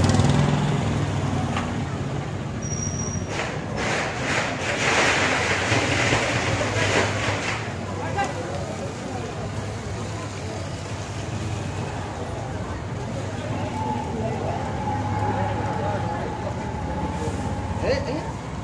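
A crowd of men chatters nearby outdoors.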